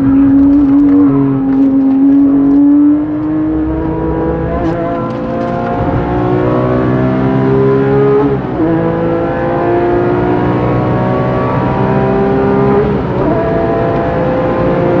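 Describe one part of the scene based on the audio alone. A sports car engine roars loudly from inside the cabin, rising in pitch as it accelerates through the gears.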